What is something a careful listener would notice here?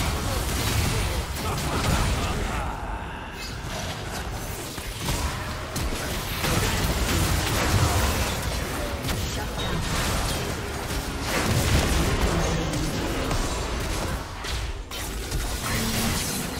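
Magic blasts and impacts crackle and boom in a fast video game battle.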